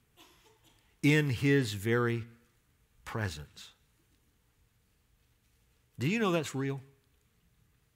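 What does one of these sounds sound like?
A middle-aged man speaks slowly and deliberately through a microphone in a large hall.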